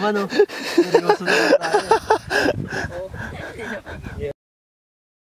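Young men laugh heartily up close.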